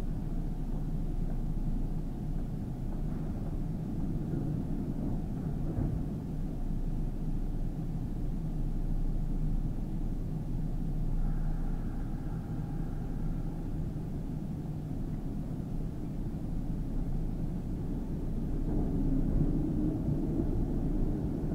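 An electric train hums steadily at low pitch while standing still.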